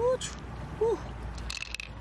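Pearls clink together in a hand.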